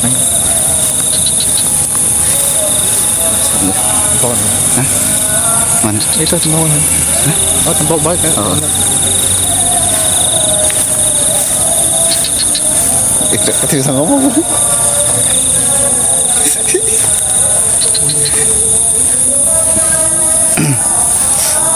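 Several men talk with each other nearby.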